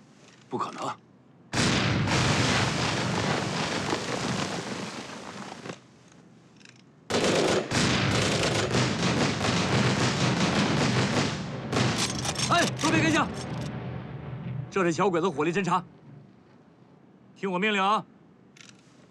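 A young man speaks urgently and tensely, close by.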